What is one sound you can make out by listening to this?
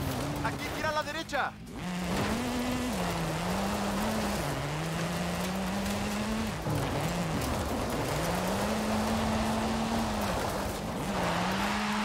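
Tyres skid and scatter gravel on a dirt track.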